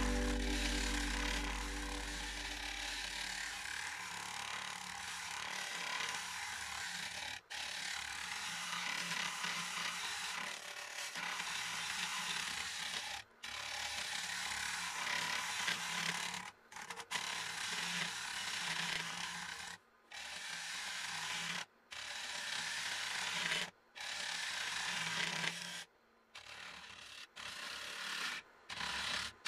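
A wood lathe hums as it spins.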